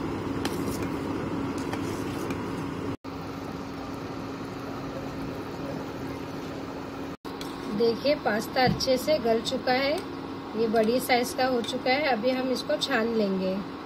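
Water bubbles at a steady boil.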